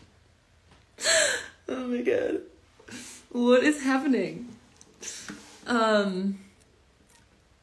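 A young woman talks and laughs with animation, close to a phone microphone.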